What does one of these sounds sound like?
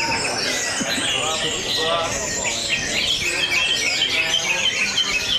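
A small bird sings in quick, bright chirps and trills.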